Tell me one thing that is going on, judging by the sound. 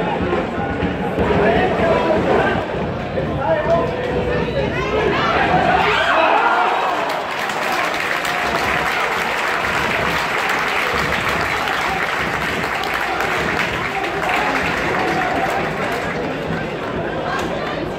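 A crowd of spectators chatters and murmurs close by, outdoors.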